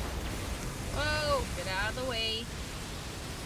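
A young woman speaks with animation into a headset microphone.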